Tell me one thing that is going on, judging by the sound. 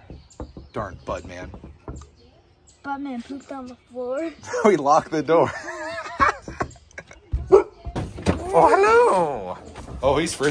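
A young boy talks and laughs excitedly close by.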